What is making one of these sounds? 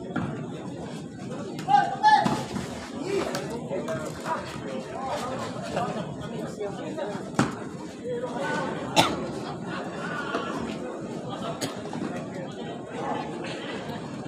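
A crowd of spectators chatters and shouts nearby.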